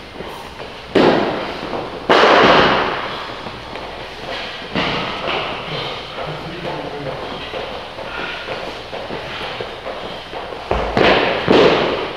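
A weight plate thuds onto a hard floor in an echoing room.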